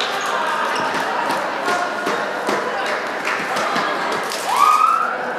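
A crowd of girls chatters and cheers in a large echoing hall.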